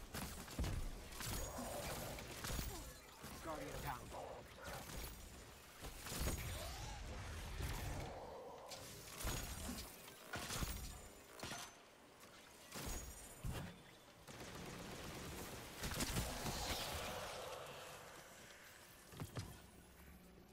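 Gunshots and blasts crack in rapid bursts.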